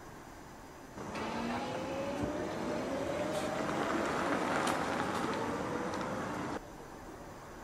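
A car pulls away with a rising electric whine.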